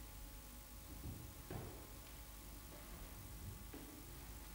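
Footsteps thud and scuff on a wooden floor.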